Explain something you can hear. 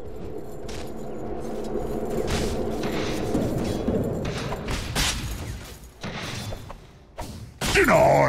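Game spell effects whoosh and crackle as characters fight.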